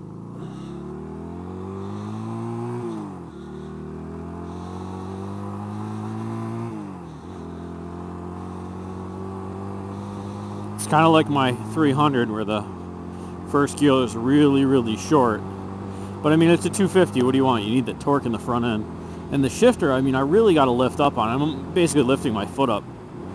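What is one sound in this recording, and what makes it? A motorcycle engine revs up through the gears, then drones steadily.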